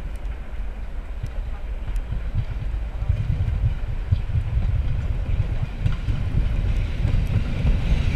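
An electric train approaches with a low, growing rumble.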